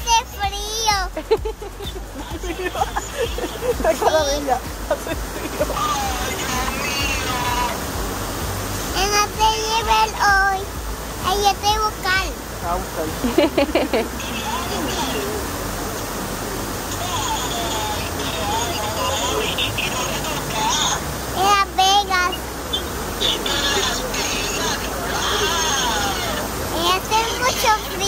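A small child talks softly up close.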